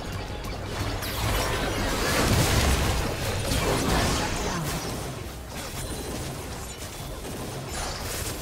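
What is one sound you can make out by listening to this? Game spell effects burst and crackle in a busy fight.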